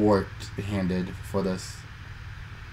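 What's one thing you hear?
A man speaks briefly into a microphone, close up.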